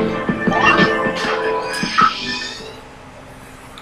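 Video game sound effects crash and chime loudly from a television, then stop.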